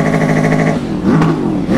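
A motorcycle engine revs up sharply.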